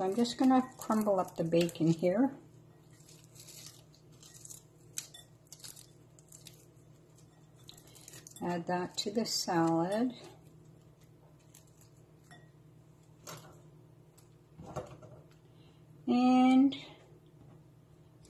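Hands rustle and toss dry seeds in a glass bowl.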